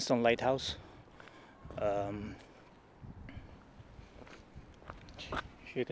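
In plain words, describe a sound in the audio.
A middle-aged man speaks calmly, close to the microphone, outdoors.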